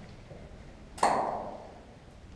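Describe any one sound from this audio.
A wooden door bangs with a sharp knock.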